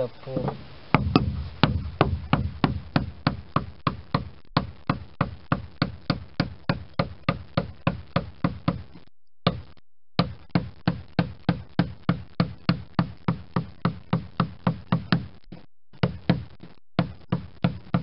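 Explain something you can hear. A mallet taps a metal chisel into wood in a quick, steady rhythm.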